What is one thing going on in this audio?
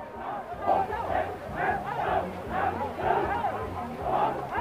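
A crowd of rowers shouts in rhythm far off across water.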